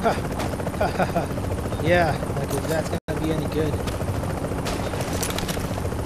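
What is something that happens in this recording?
A helicopter's rotor thumps and drones overhead.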